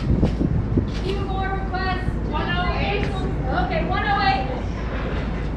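A woman sings through a loudspeaker in the distance.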